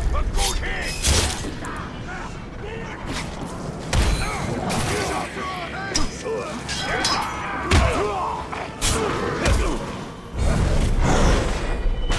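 Heavy blows thud against bodies.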